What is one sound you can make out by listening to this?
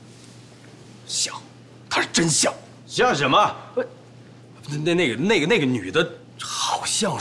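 A man speaks tearfully and with emotion close by.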